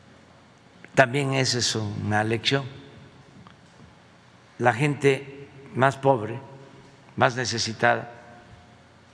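An elderly man speaks slowly and calmly into a microphone, with pauses.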